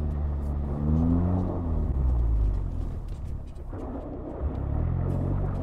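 Tyres crunch and slide over snow.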